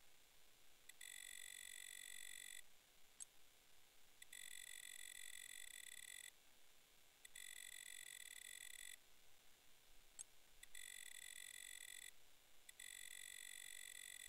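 A steady electronic buzzing tone sounds in bursts while a slider moves.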